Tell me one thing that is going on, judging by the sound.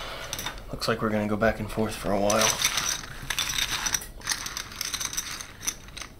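Poker chips clatter as they are pushed across a table.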